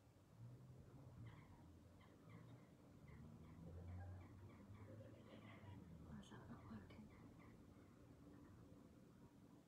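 A woman speaks quietly to herself.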